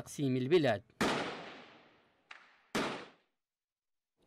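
Gunshots crack loudly and echo outdoors.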